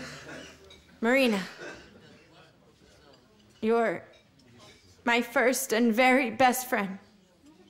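A young woman speaks nearby with emotion.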